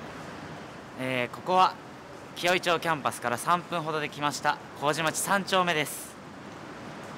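A young man talks cheerfully close by, outdoors.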